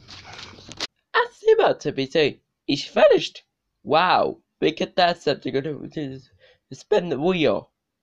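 A teenage boy talks close to the microphone.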